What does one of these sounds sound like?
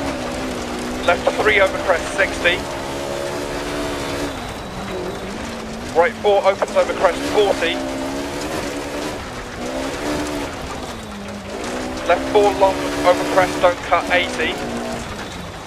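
Tyres crunch and skid on gravel in short bursts.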